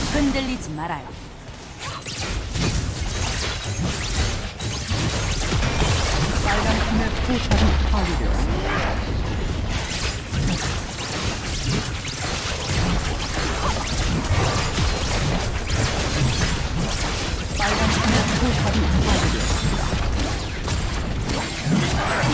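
Video game spell effects and weapon hits clash and burst rapidly.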